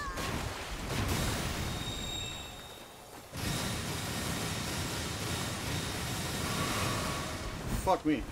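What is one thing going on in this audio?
A magic spell bursts with a bright shimmering chime.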